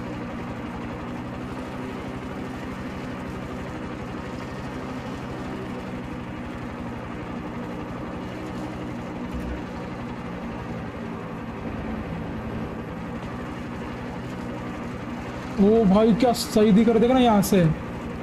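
A helicopter's rotor blades thump steadily.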